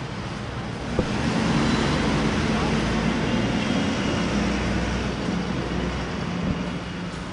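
A bus engine rumbles as it pulls away.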